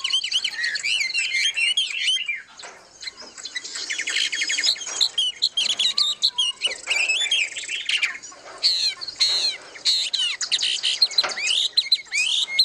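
Small birds chirp and twitter rapidly, close by, outdoors.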